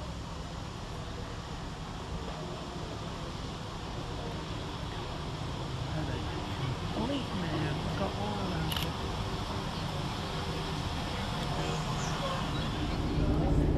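A train rumbles into the station, drawing closer and louder.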